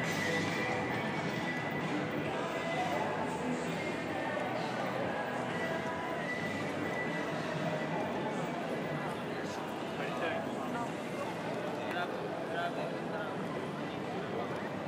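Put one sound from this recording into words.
Distant city traffic and passers-by murmur steadily outdoors.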